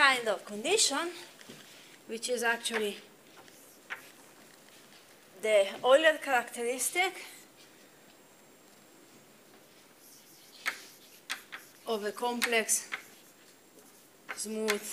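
A young woman speaks calmly in a lecturing tone.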